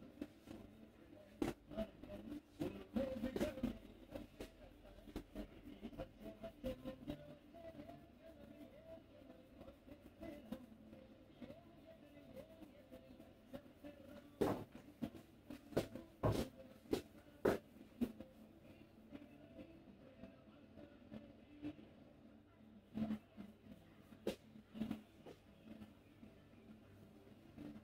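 Fingers rub and scrunch through hair close by.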